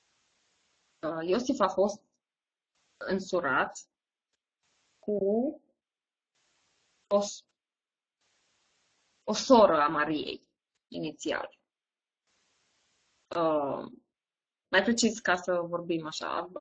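A woman speaks calmly in short phrases into a close microphone, with pauses between them.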